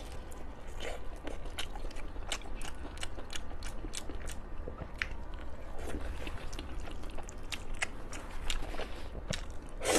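A young woman chews food noisily close to a microphone.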